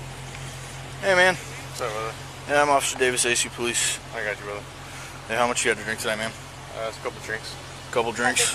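A man speaks firmly and close by.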